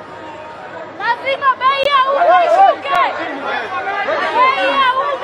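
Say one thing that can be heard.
A woman shouts loudly with excitement close by.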